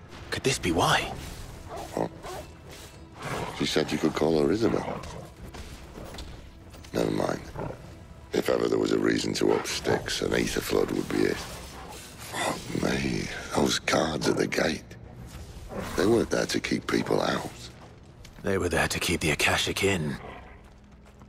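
A sword slashes and clangs in fast combat.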